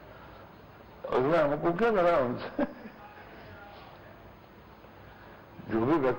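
An elderly man speaks slowly and calmly, close to a microphone.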